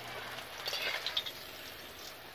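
Fish sizzles in hot oil in a pan.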